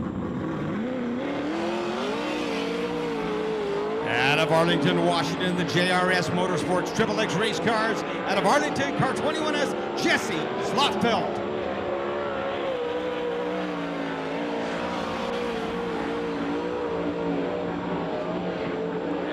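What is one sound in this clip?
A race car engine roars loudly.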